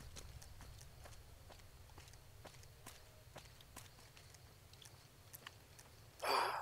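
Footsteps crunch on dry ground at a steady walking pace.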